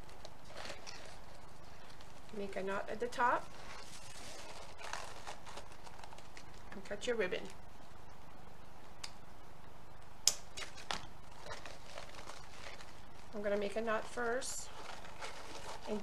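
Plastic ribbon crinkles and rustles as it is tied.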